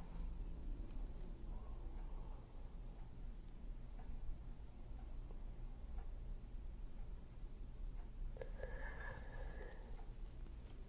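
A woman snores softly in her sleep.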